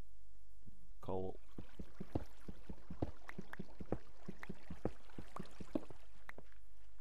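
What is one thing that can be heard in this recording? A pickaxe taps rapidly on stone.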